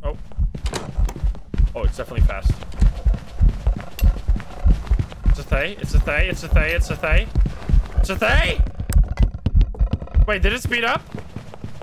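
Dull thumping footsteps sound on a wooden floor.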